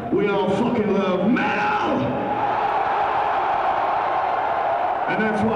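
A man shouts into a microphone through loud speakers.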